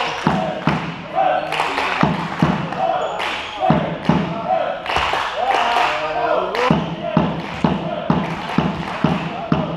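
Volleyballs are struck and bounce with sharp smacks that echo through a large hall.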